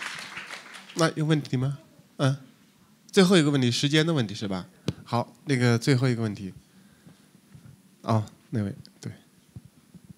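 A man speaks with animation through a microphone in a large hall.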